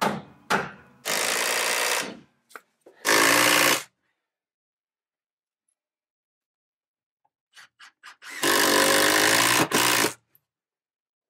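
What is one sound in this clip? A cordless drill whirs in short bursts.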